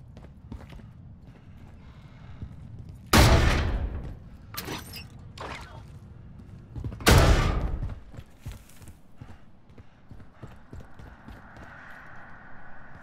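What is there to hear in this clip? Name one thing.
Footsteps walk on hard ground.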